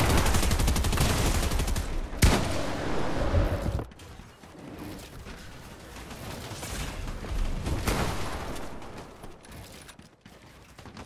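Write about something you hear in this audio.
Rapid clattering thuds of building pieces snapping into place in a video game.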